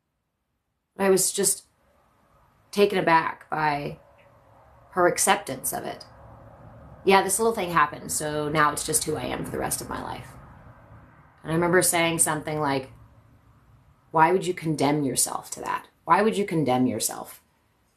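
A young woman speaks calmly and softly, close by.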